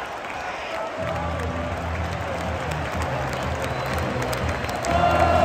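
A large stadium crowd roars and cheers.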